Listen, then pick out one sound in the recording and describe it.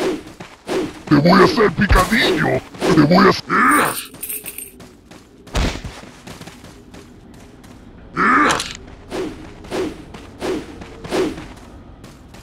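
A monster growls and groans.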